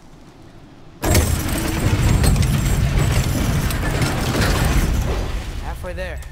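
A heavy chain rattles as a large wooden gate rumbles and lowers.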